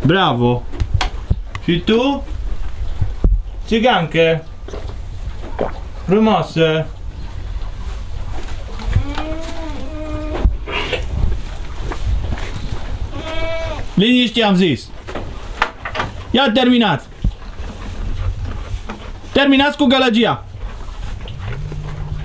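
Goats bleat loudly and repeatedly close by.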